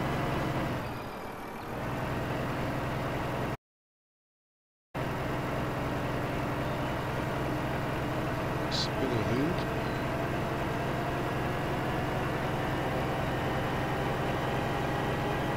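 A truck engine rumbles steadily as the truck drives along.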